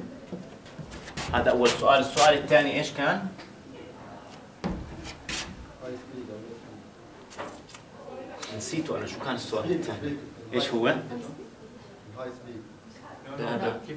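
A man speaks calmly and clearly in a room with some echo.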